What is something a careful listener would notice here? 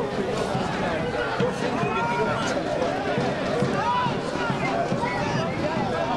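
A crowd of spectators shouts and chants outdoors.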